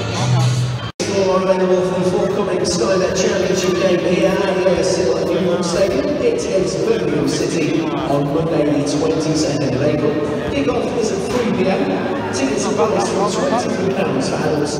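A crowd of men and women chatters all around in a large, echoing space.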